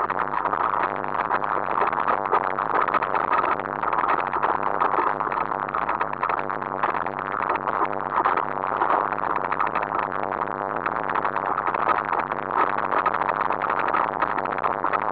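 Tyres roll and crunch over a rough dirt trail.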